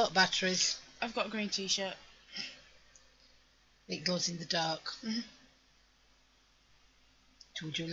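An older woman talks calmly and close by.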